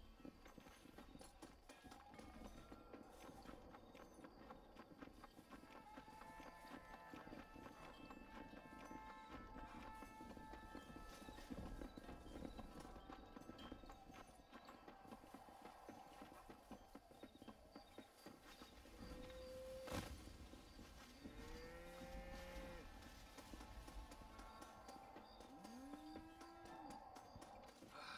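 Footsteps run quickly over rocky ground.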